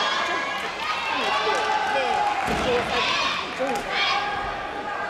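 A gymnast's feet thump on a springy tumbling track.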